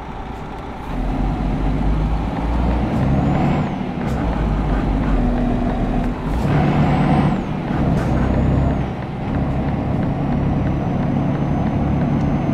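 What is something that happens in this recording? A truck engine grows louder and rumbles deeper as it speeds up.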